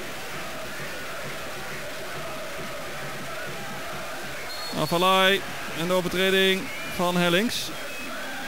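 A large stadium crowd murmurs steadily.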